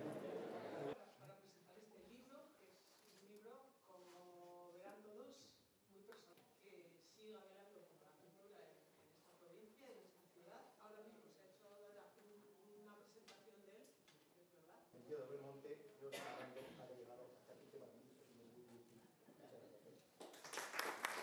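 A middle-aged woman speaks calmly through a microphone in a large room.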